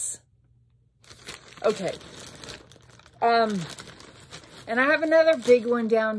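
A plastic mailer bag crinkles and rustles.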